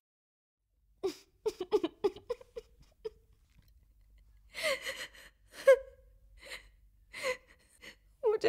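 A young woman sobs and speaks tearfully close by.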